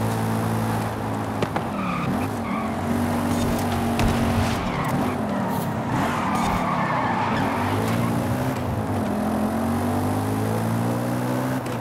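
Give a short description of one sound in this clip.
A car engine drops and rises in pitch as the car slows and speeds up again.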